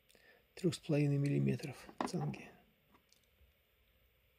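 A small metal holder clicks down onto a hard box.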